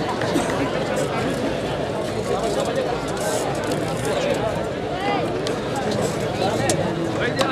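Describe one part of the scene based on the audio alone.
A large outdoor crowd of men murmurs and chatters loudly.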